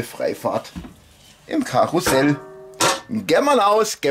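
A metal roasting tray clatters onto a hard surface.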